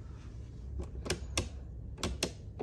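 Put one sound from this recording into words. Light switches click several times.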